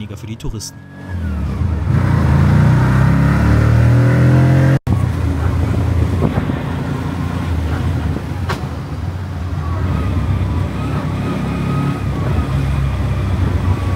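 A small three-wheeler engine rattles and drones loudly.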